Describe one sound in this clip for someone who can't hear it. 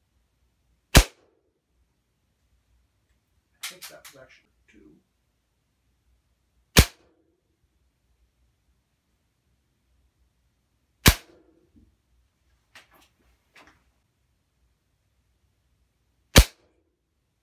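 Pellets strike a leather boot with loud, sharp cracks a few seconds apart.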